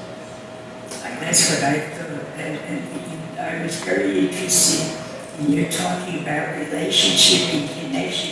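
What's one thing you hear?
An elderly woman speaks calmly into a microphone in an echoing hall.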